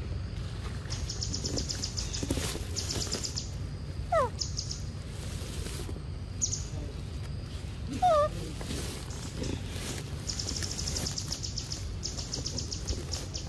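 A young monkey chews and slurps on soft fruit close by.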